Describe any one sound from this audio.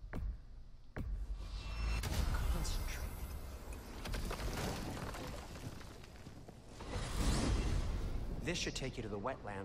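A deep magical rumble swells and whooshes.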